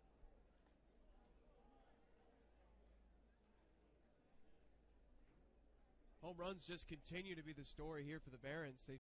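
A crowd murmurs and cheers in a large ballpark.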